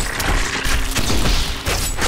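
A loud electric crackle of lightning bursts out.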